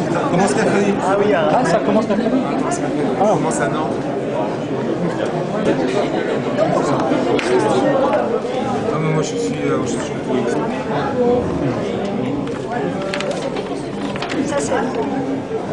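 A murmur of several voices fills a busy room.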